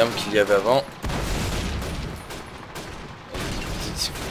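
A heavy explosion booms and rumbles deeply.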